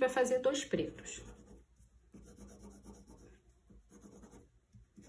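A pencil scratches across paper in quick strokes.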